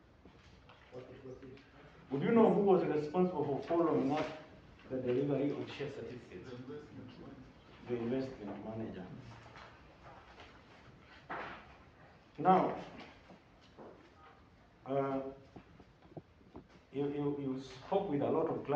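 A man speaks slowly and formally into a microphone in an echoing room, pausing often.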